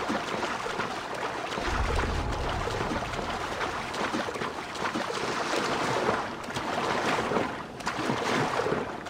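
Water splashes steadily as a swimmer strokes through the sea.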